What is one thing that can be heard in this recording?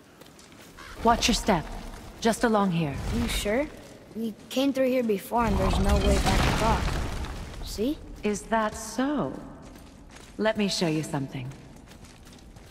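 A man speaks in a deep, low voice.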